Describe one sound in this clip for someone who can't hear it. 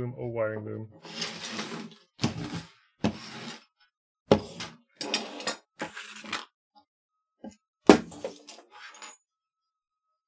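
Plastic cables rustle and clack as they are handled.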